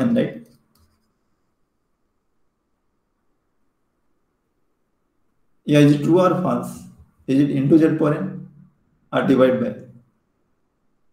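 A young man speaks calmly through an online call, in short phrases with pauses.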